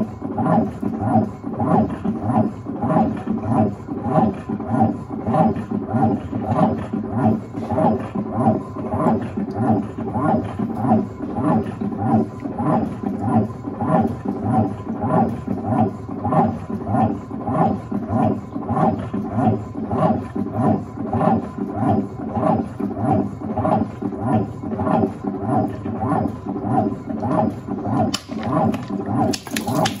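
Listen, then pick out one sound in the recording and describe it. Water sloshes and swirls around clothes in a washing machine.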